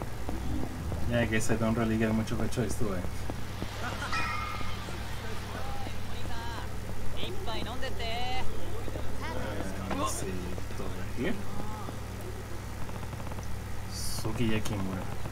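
Men and women chatter nearby on a busy street.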